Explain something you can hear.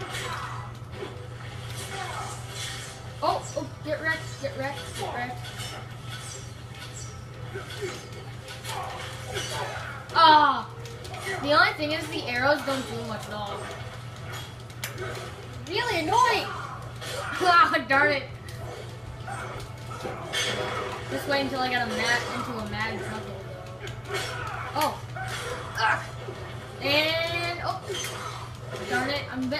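Fighting game hits and thuds play from a television, with quick blows landing again and again.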